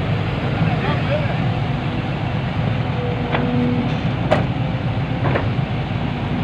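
Dirt and rocks thud and clatter into a truck bed.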